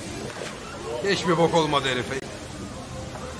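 Something plunges into water with a loud splash.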